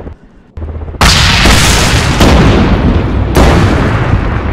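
Loud blasts boom close by, one after another.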